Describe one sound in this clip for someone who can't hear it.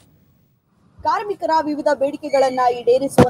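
A young woman speaks clearly into a microphone.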